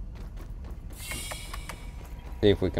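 A door slides open with a short hiss.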